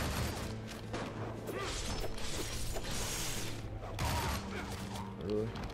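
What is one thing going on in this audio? Punches and heavy blows land hard in a fast brawl.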